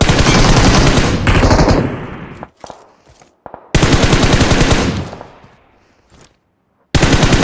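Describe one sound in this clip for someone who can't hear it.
A rifle fires in rapid bursts, each burst ringing out and fading.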